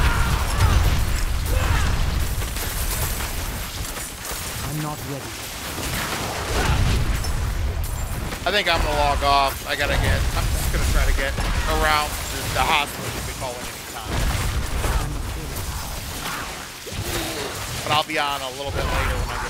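Heavy thuds and impacts of combat sound constantly.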